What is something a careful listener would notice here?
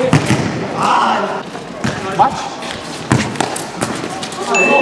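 A ball is kicked hard, with sharp thuds.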